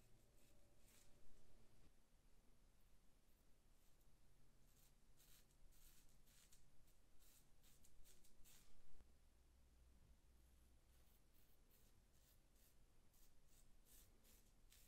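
A razor scrapes in short strokes across stubble on a scalp.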